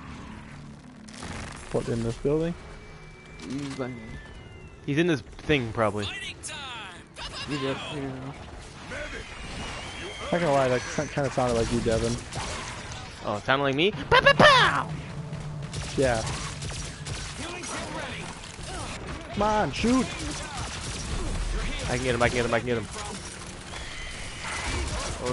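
An energy gun fires in bursts of zapping shots.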